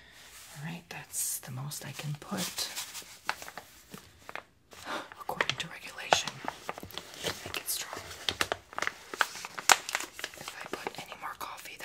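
A plastic bag crinkles in someone's hands.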